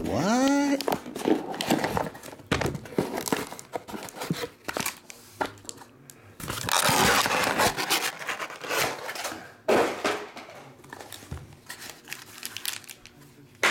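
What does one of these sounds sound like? Hands shuffle and tap against a cardboard box.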